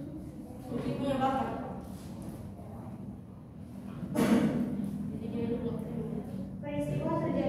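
A young woman speaks aloud to a class in a room with some echo.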